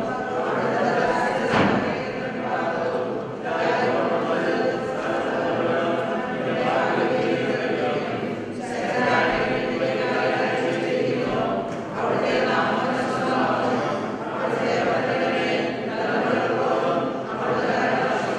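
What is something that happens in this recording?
A man chants into a microphone in a large echoing hall.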